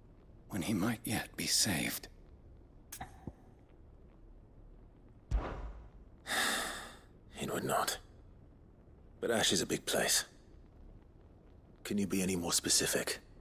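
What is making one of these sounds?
A young man speaks calmly and earnestly.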